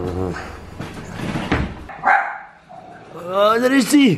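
Wheelchair wheels roll over a tiled floor.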